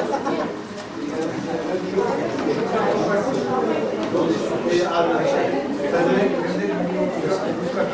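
A crowd of men and women chatters close by.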